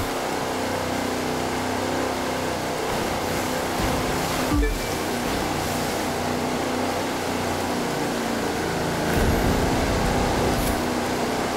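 A speedboat engine roars steadily at high speed.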